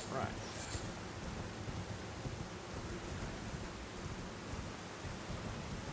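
Hooves thud steadily as a horse gallops over grass.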